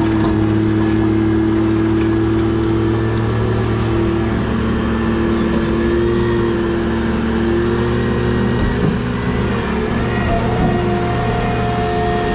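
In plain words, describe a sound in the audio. A hydraulic pump whines as a grapple claw moves.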